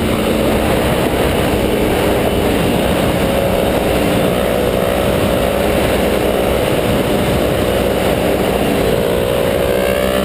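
A second motorcycle's engine revs nearby.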